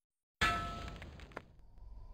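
Stone shatters with a sharp crash.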